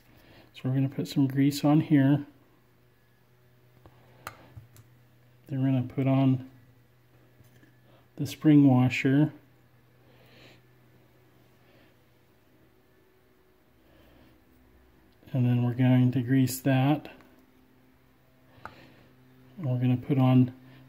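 A small metal tool scrapes and clicks against a metal part.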